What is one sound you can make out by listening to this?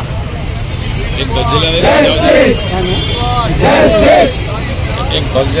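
A crowd of men and women chant slogans loudly in unison outdoors.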